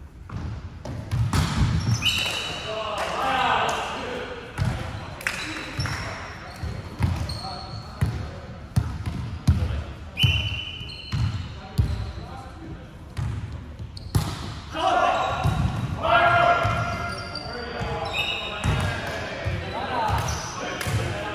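A volleyball thuds as players hit it, echoing in a large hall.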